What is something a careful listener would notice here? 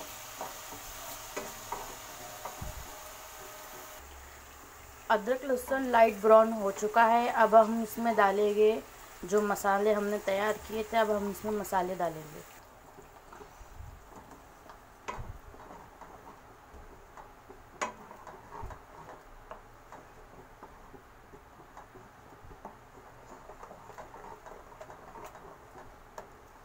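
A wooden spoon scrapes and knocks against a pan.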